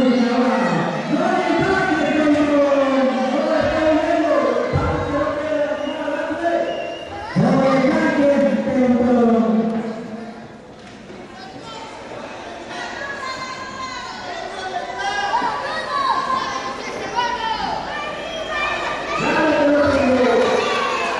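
A crowd shouts and chants loudly in a large echoing hall.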